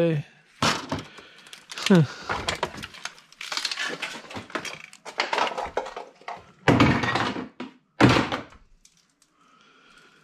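Plastic and metal objects clatter as hands rummage through a pile.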